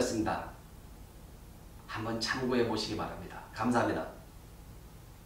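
A middle-aged man speaks calmly and close up in short phrases.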